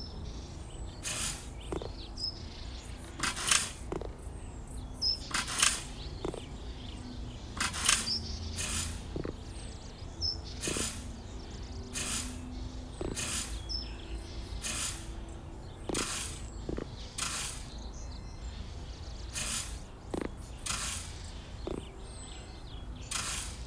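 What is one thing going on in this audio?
A broom sweeps across pavement in repeated brushing swishes.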